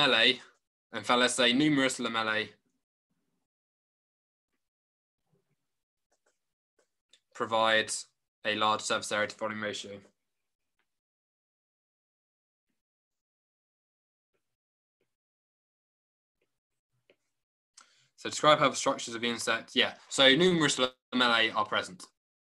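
A man speaks calmly through a microphone, explaining in pauses, as over an online call.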